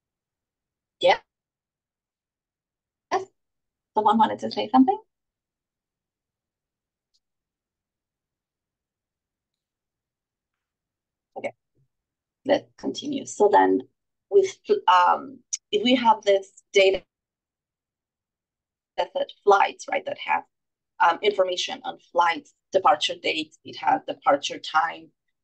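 A woman speaks calmly into a microphone, with pauses.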